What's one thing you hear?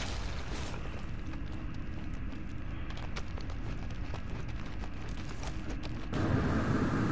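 Footsteps crunch on rocky ground.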